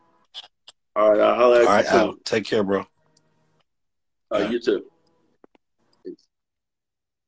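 Another man answers calmly over an online call.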